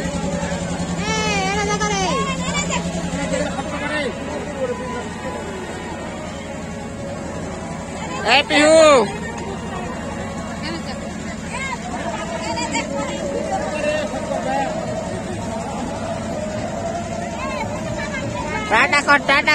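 Children squeal and shout excitedly nearby.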